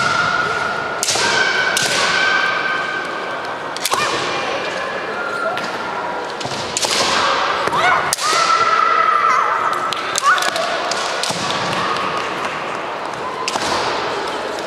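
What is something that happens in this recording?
Bamboo swords clack sharply against each other in a large echoing hall.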